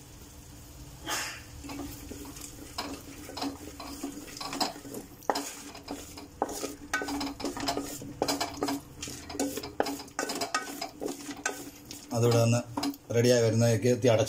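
A spatula scrapes and clinks against a metal pot.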